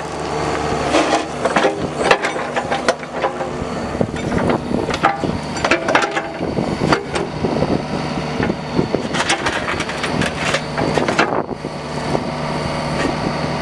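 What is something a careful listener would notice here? Steel tracks clank and crunch over gravel.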